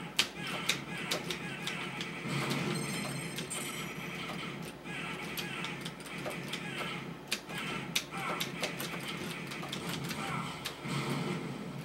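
Arcade game music plays steadily.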